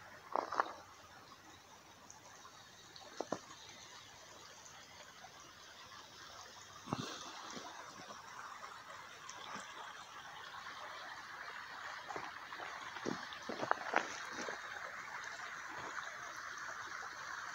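Footsteps crunch on dry, sandy ground.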